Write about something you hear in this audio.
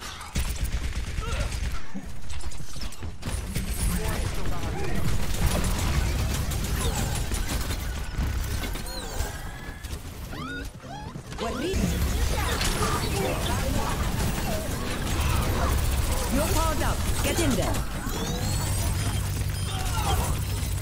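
Rapid gunfire rattles from a video game.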